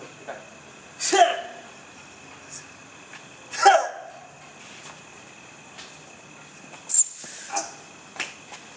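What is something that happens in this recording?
Hands slap sharply against bodies during grappling.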